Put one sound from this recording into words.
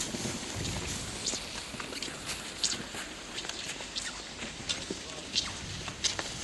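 Skis swish and scrape over packed snow as a skier passes close by.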